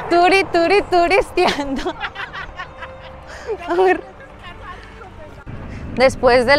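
A young woman speaks excitedly close by, in a high sing-song voice.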